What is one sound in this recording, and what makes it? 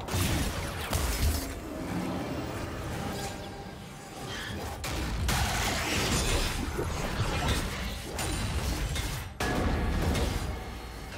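Video game spell effects whoosh and clash during a fight.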